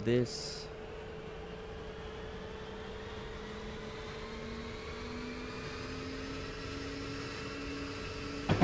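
A locomotive engine hums and slowly rises in pitch.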